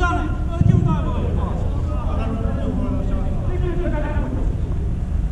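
Men call out to each other during a five-a-side football match in a large echoing hall.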